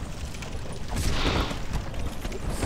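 A monster swings at a fighter with a loud rushing whoosh.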